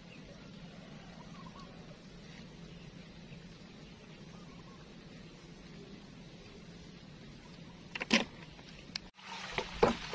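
Wind blows softly across open water.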